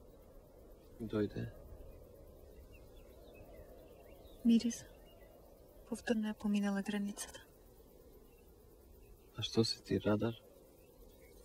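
A young woman speaks softly in short phrases, close by.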